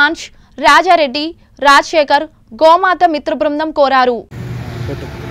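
A young woman reads out news clearly through a microphone.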